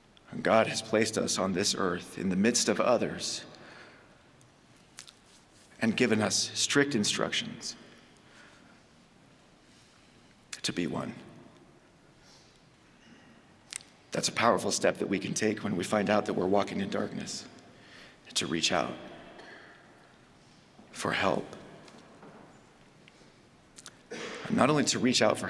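A man speaks calmly into a microphone, with pauses, in a room with a slight echo.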